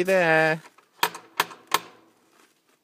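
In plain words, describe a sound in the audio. A brass knocker raps on a wooden door.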